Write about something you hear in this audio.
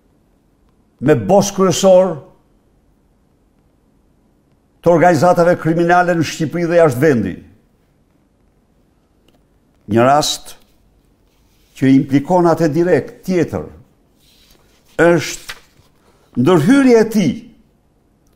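An elderly man speaks forcefully into a microphone in short bursts with pauses.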